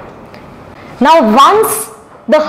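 A young woman speaks through a microphone close by.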